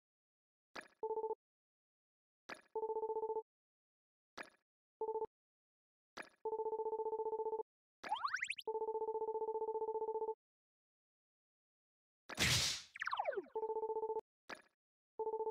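Short electronic beeping tones chatter as text scrolls out.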